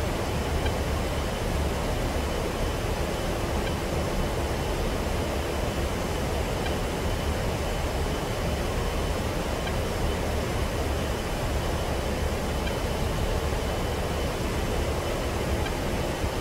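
Twin turbofan engines of a jet drone steadily, heard from inside the cockpit in flight.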